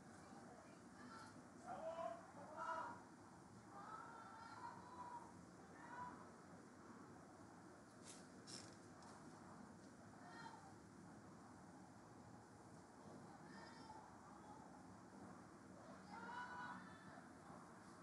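Young women shout to each other in the distance across an open outdoor field.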